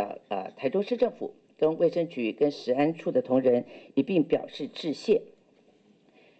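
A middle-aged woman speaks calmly into a microphone.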